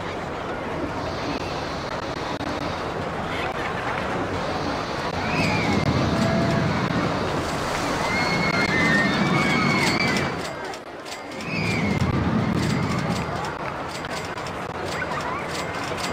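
A roller coaster train rumbles along its track, swelling and fading.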